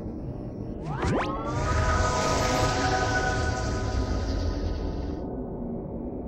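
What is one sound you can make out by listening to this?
A rising chime plays as an upgrade is acquired.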